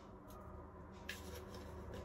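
A spoon clinks as it stirs.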